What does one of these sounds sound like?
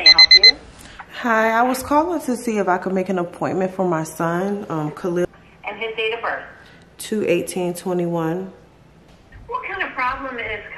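A young woman talks casually, close up.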